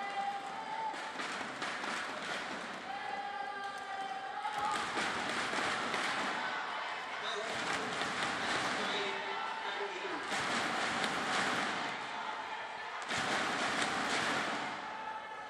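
A large crowd cheers loudly in a big echoing hall.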